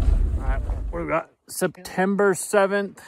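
A man speaks close by with animation.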